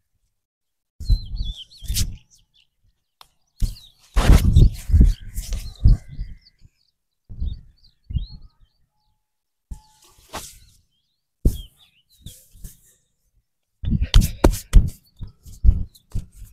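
Hands slap and rub on bare skin during a massage.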